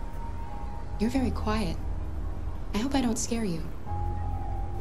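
A young woman speaks softly and gently, close by.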